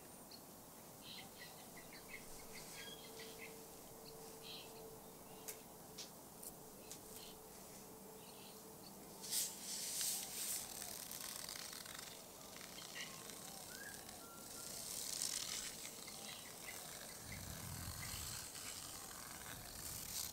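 Leaves rustle in a breeze, rising and falling in gusts.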